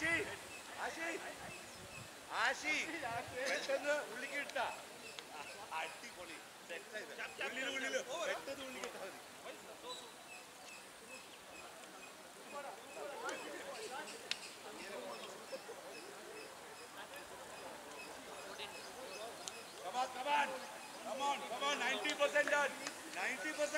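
Several men talk and call out to each other outdoors at a distance.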